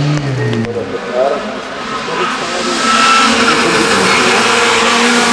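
A second racing car engine roars closer, growing louder.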